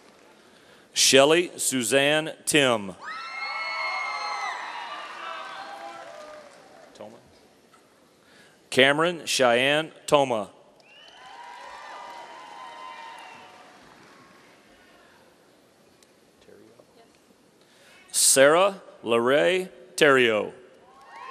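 A man reads out names through a microphone and loudspeaker, echoing in a large hall.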